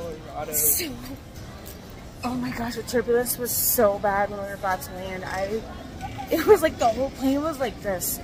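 A woman talks close by with excitement.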